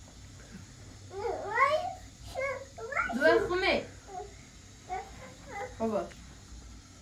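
A small child babbles and squeals.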